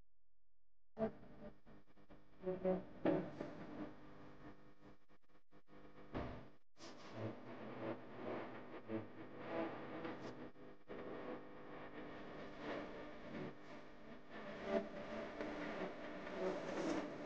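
Stiff paper crinkles and rustles as hands fold it.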